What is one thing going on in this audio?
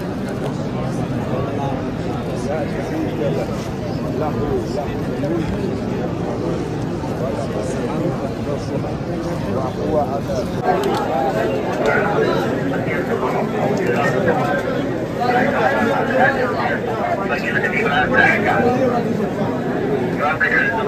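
A large crowd of men murmurs and chants close by, outdoors.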